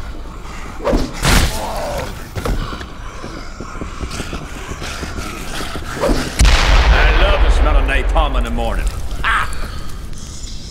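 A blade hacks into flesh with wet thuds.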